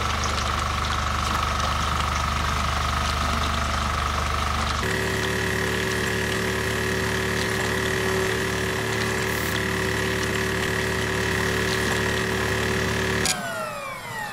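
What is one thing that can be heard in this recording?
A machine hums loudly and steadily.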